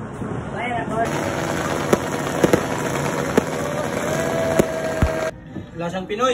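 Fireworks bang and crackle.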